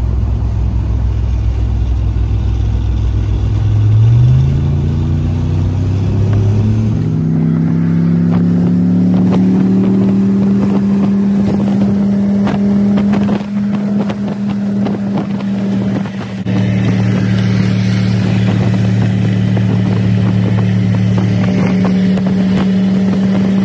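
Tyres roll on a highway.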